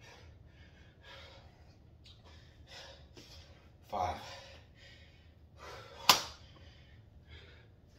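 Sneakers thump and scuff on a hard floor as a man jumps.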